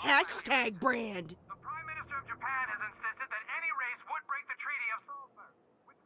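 A woman speaks loudly and with animation, close by.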